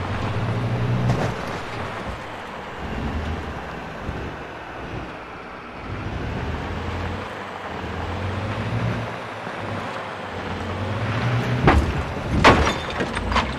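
Tyres crunch over gravel and rough ground.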